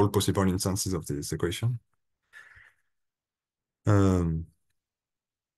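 A young man speaks calmly over an online call, pausing between phrases.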